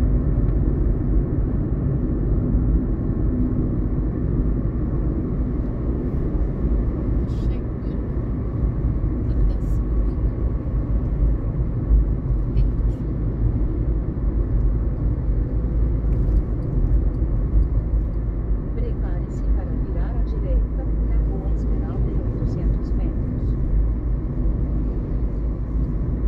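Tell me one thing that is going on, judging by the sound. Road noise and engine rumble fill the inside of a moving car.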